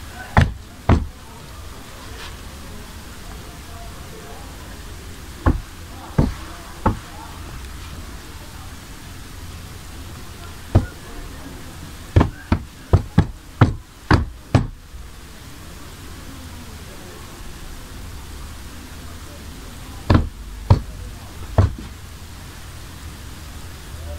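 Hands rustle and smooth a sheet of cloth.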